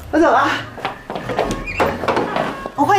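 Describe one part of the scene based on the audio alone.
A woman speaks cheerfully.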